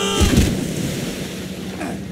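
Water splashes loudly as a body plunges in.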